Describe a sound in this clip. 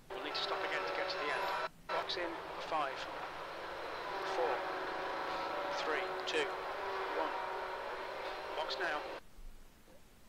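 A race car engine hums steadily at low speed, then cuts out.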